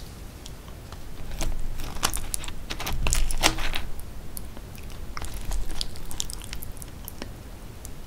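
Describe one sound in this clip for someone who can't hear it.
A fork scrapes and clinks against a glass dish.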